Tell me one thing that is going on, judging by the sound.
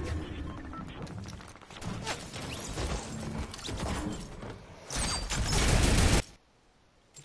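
Gunfire crackles in loud bursts.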